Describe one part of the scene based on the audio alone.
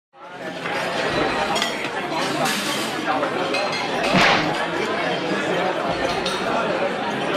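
Many young men and women chatter and talk at once in a busy room.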